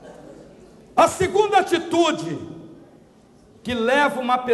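A man preaches with animation into a microphone over loudspeakers in an echoing hall.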